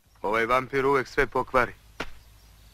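A young man speaks close by in an upset voice.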